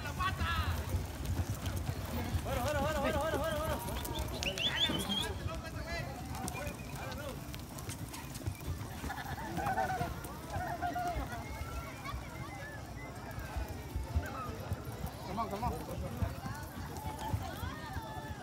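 Horses' hooves thud on soft dirt.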